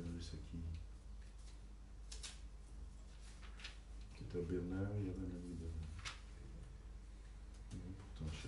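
An elderly man reads aloud slowly into a microphone.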